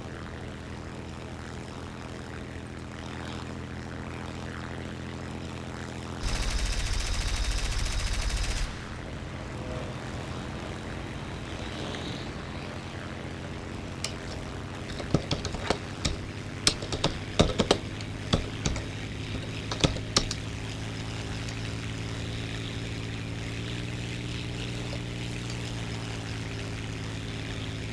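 A propeller engine drones steadily throughout.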